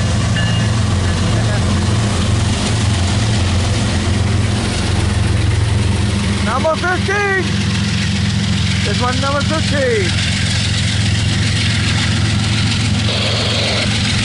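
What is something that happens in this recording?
Diesel locomotives rumble loudly close by.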